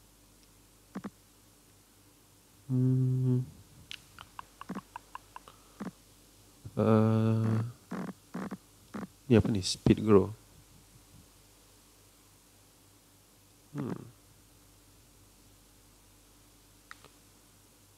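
Soft game menu clicks tick as a list scrolls.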